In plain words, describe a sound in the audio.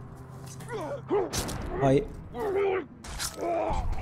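Blades clash and strike in a close fight.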